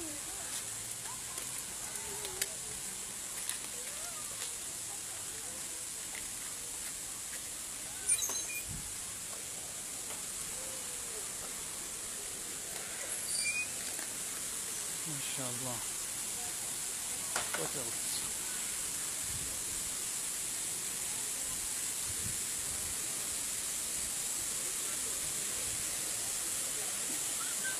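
Strong wind gusts through trees.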